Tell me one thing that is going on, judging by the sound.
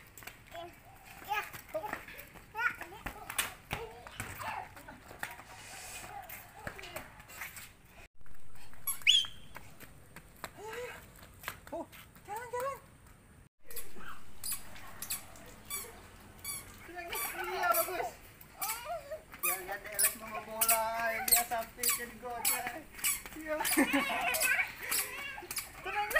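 Small children babble and shout playfully nearby.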